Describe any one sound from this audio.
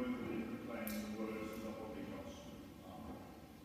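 An organ plays softly in an echoing hall.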